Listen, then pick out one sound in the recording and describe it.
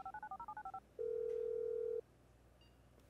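A phone tone sounds steadily, then stops.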